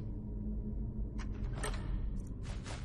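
A lock clicks as a pick turns in it.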